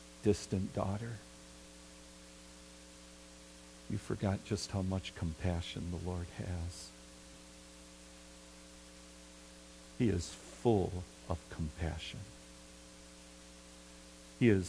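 A middle-aged man speaks calmly in short bursts with pauses, heard through a microphone and loudspeakers.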